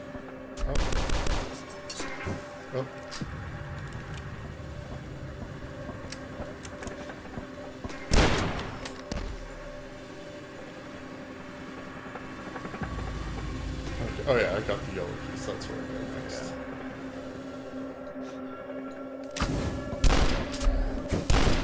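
A shotgun fires with loud blasts.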